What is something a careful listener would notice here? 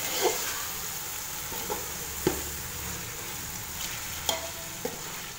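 A metal spoon scrapes and clinks against a pot while stirring food.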